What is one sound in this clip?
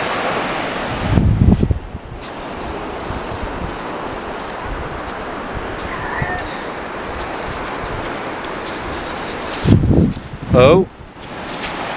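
Wind gusts across the microphone outdoors.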